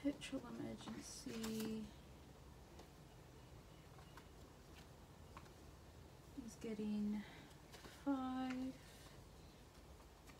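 Banknotes rustle and crinkle as they are handled.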